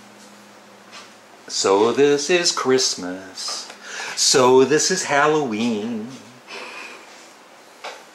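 Pages of a book rustle as they are handled.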